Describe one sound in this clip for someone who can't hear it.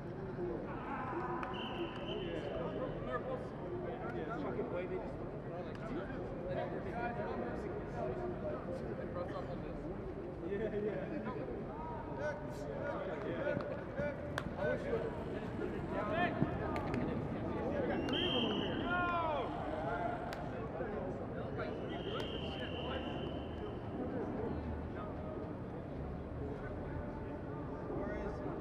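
Several men call and shout to each other outdoors, at a distance.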